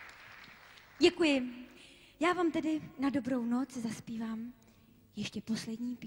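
A young woman sings into a microphone, close and clear.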